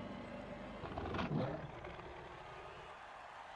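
A monster lets out a loud, growling roar.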